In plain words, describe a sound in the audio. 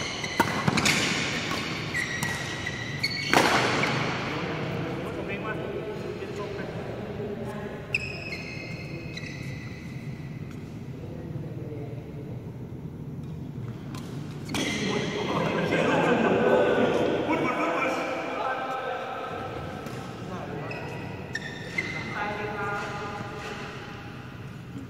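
Sports shoes squeak sharply on a court floor.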